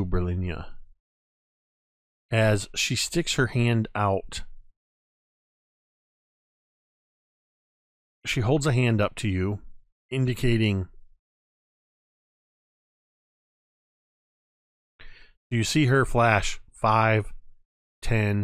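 A man talks with animation over an online call microphone.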